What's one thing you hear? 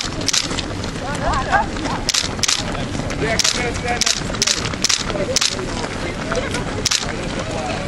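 Many runners' shoes patter on an asphalt road.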